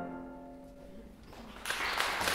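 A final plucked string note and piano chord ring out and fade in a hall.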